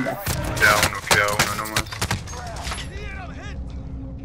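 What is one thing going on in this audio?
A rifle shot cracks loudly.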